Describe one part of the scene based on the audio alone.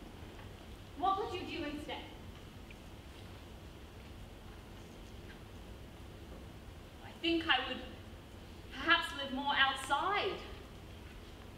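A woman speaks with animation, heard from a distance in a hall.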